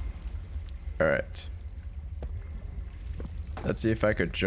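A young man speaks in short bursts with animation, close to a microphone.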